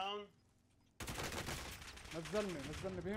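Gunfire rattles in a rapid burst.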